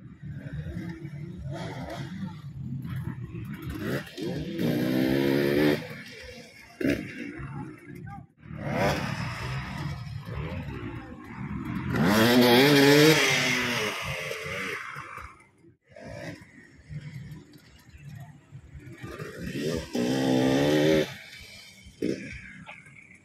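A dirt bike engine revs hard in repeated rising and falling bursts.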